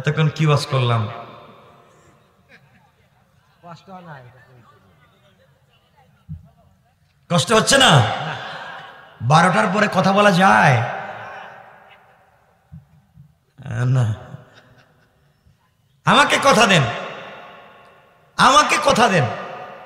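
A man speaks with animation into a microphone, in bursts with pauses, his voice echoing over a loudspeaker.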